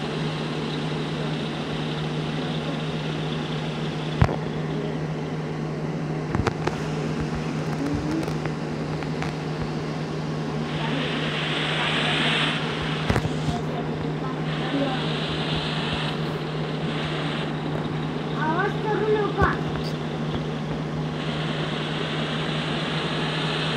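A simulated semi-truck engine drones as the truck drives.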